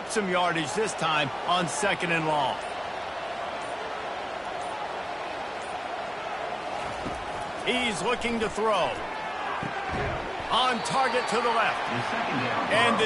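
A stadium crowd murmurs and cheers steadily in the distance.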